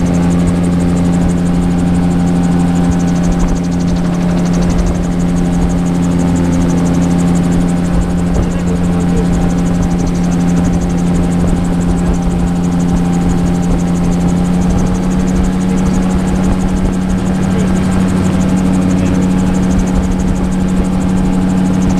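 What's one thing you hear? Wind rushes past in an open cockpit.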